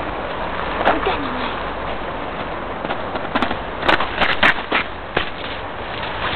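A small dog's paws crunch on snow and gravel.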